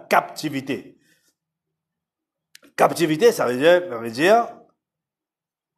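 A man speaks through a microphone, reading out in a steady voice.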